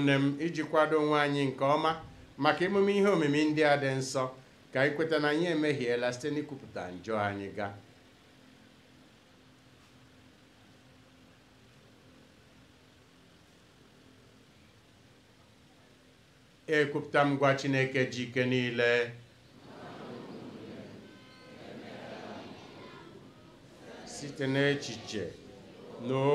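A man speaks slowly and solemnly through a microphone and loudspeakers.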